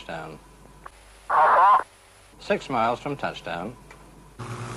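A man speaks briefly over a radio headset microphone.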